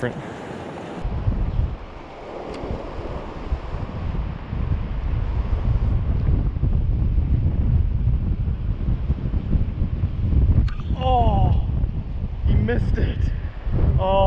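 A river rushes and splashes over rocks nearby.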